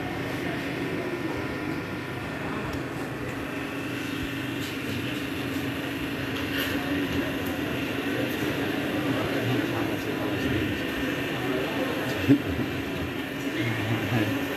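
A large choir sings together in an echoing hall.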